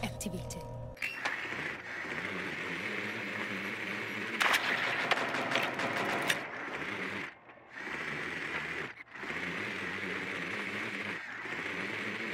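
A small rolling drone's motor whirs with a steady electric hum.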